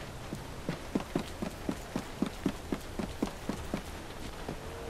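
Quick footsteps run across a hard roof.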